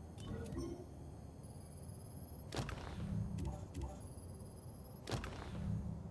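Menu selections click and beep.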